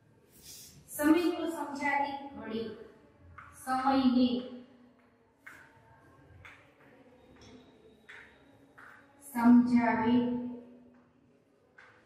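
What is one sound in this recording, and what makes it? A woman speaks clearly in a teaching tone, close by.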